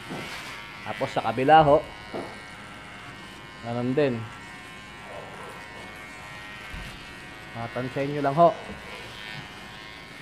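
Hair clippers buzz steadily near the head.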